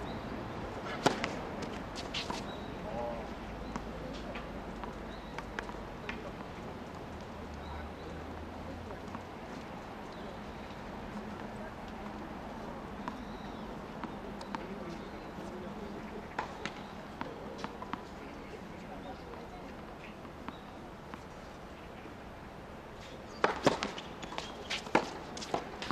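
A tennis ball is struck sharply by a racket outdoors.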